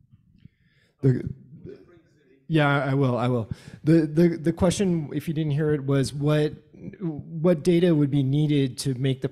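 A man speaks loudly and clearly into a close microphone.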